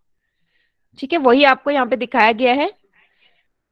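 A young woman speaks through a microphone on an online call.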